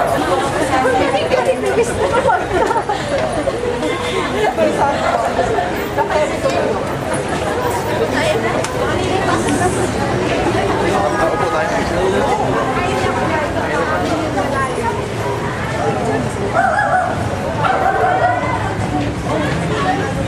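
A crowd of men and women chatters loudly all around, close by.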